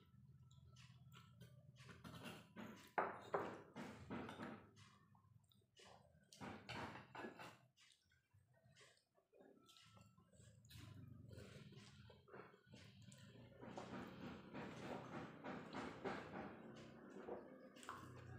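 A man chews and smacks his lips noisily close by.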